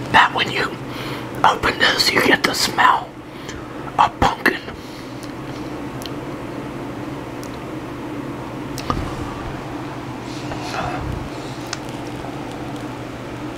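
An elderly man sips and swallows a drink.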